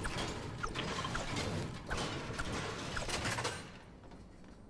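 A pickaxe knocks repeatedly against a wall.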